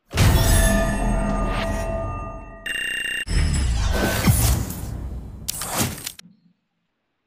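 Loud, bright game music plays with sound effects, then cuts off.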